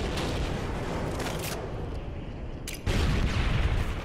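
Rapid gunshots fire in a short burst.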